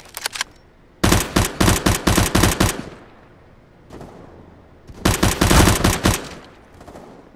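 Rapid bursts of rifle gunfire ring out loudly.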